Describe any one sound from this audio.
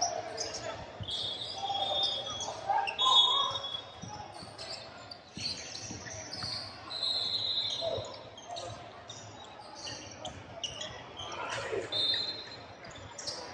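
Sneakers squeak sharply on a wooden court, echoing in a large hall.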